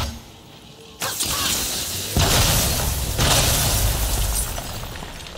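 A magical blast bursts with a loud whoosh.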